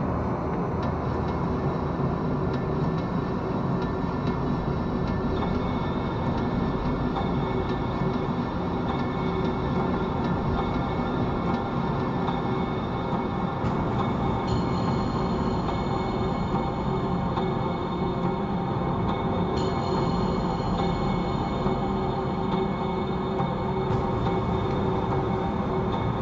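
Skateboard wheels roll and rumble steadily over pavement.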